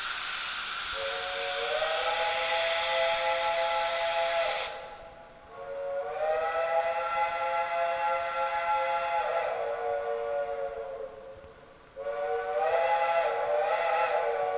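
A steam locomotive's whistle blows in long, loud blasts.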